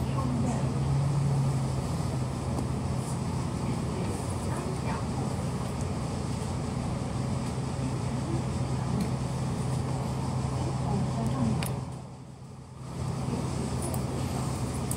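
Wind rustles through leafy trees outdoors.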